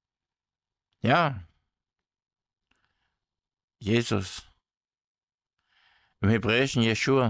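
A man speaks calmly and closely in short phrases.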